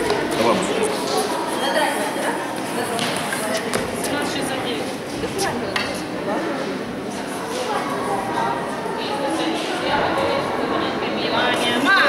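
A woman speaks calmly to children nearby.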